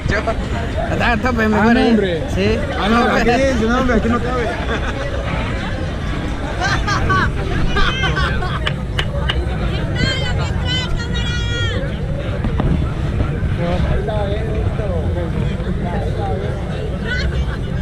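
A fairground ride rumbles steadily outdoors.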